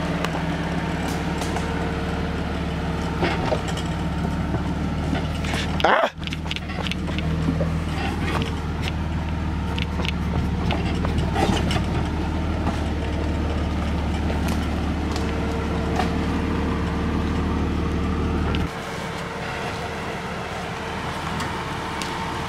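Off-road tyres crunch over dirt and rocks.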